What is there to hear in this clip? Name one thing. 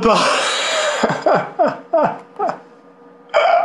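A young man sobs in short gasping bursts.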